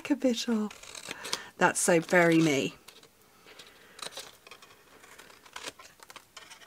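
Scissors snip through card stock.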